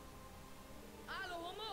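A man speaks in a low voice.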